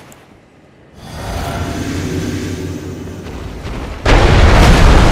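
A magic spell hums and shimmers.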